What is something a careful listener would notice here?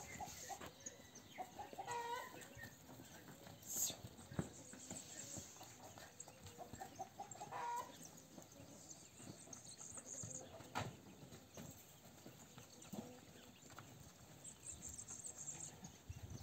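Calves' hooves shuffle and thud on dry dirt.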